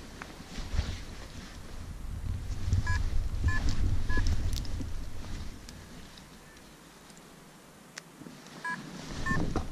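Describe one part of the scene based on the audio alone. Footsteps brush through short grass.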